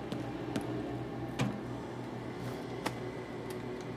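A small appliance door clicks open.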